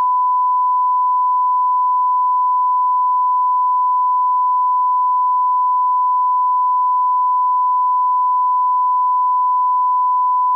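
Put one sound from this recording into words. A steady, high-pitched test tone sounds without a break.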